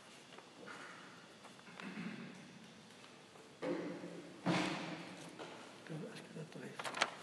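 A man speaks in a low voice.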